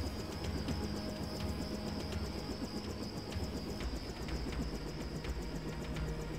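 A propeller plane's engine drones steadily overhead.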